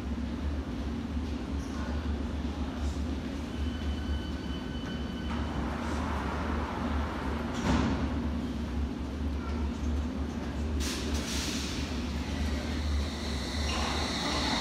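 An underground train hums steadily while standing in an echoing station.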